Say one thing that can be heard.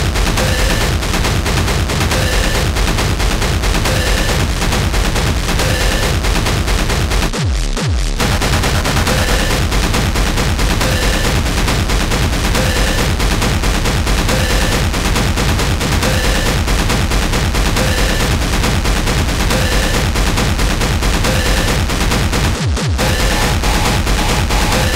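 Loud electronic dance music pounds with a fast, driving beat.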